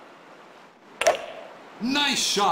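A golf club swings and strikes a ball with a sharp whack.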